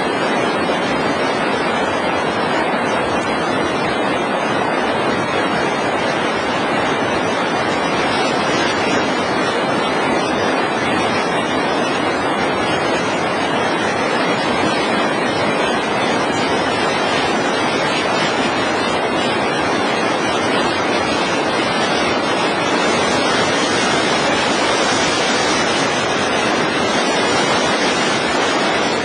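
A fast river rushes and roars loudly close by.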